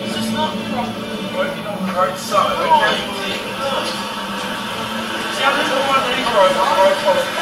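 A young man talks with animation nearby.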